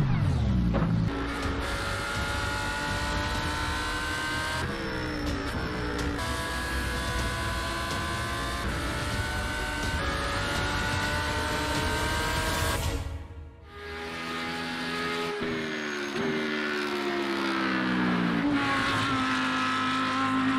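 A racing car engine roars at high revs, its pitch climbing and dropping with each gear change.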